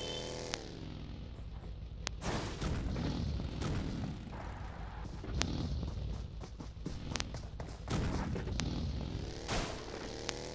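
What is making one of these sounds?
Tyres rumble and bump over rough ground.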